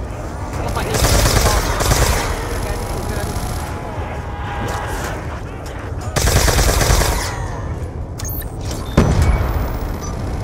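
A gun fires loud rapid bursts.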